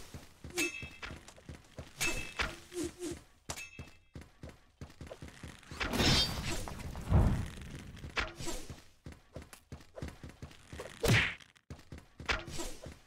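Laser guns fire in rapid bursts.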